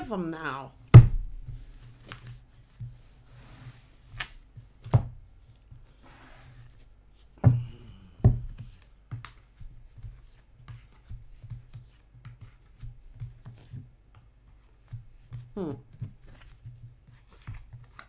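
Cards slap and shuffle on a table.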